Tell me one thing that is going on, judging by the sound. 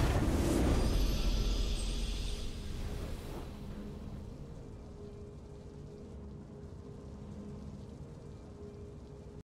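A triumphant fanfare swells and then fades.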